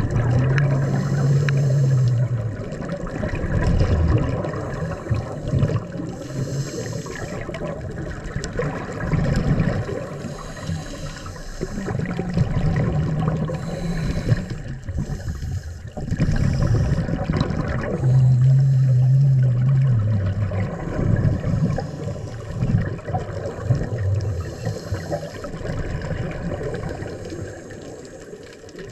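Bubbles rush out from a diver's regulator.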